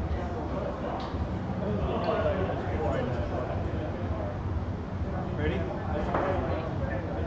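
A ball knocks against the table walls and figures.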